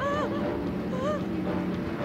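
A woman cries out loudly.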